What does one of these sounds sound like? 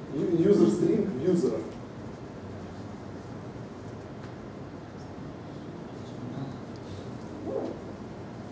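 A man speaks to an audience in a room with a slight echo.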